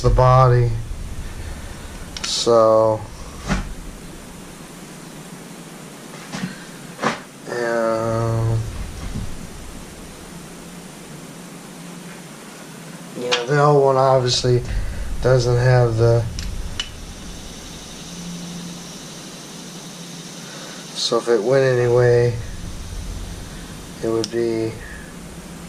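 A middle-aged man talks calmly close by, in short bursts.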